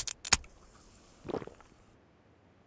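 A drink is gulped down.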